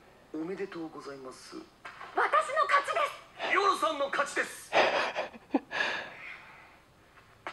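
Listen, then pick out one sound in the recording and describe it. A woman laughs softly close by.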